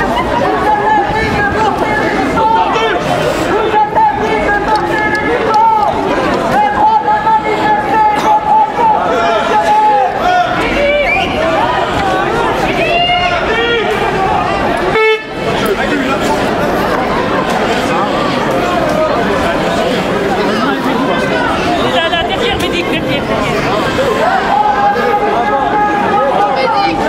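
A crowd of men and women talk and shout loudly outdoors.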